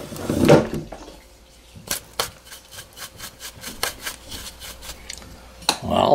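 A brush sweeps metal chips off a steel table with light clicks.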